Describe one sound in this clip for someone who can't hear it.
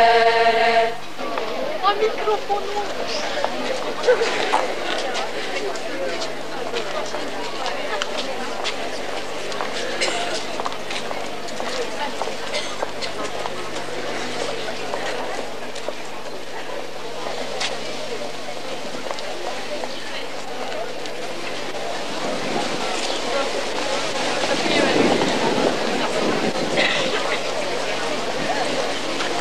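A crowd of children murmurs and chatters outdoors.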